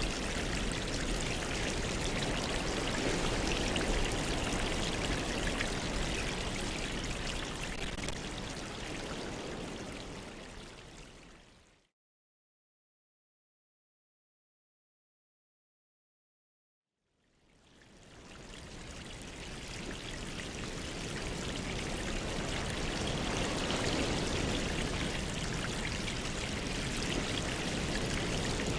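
Air bubbles stream and gurgle steadily in water.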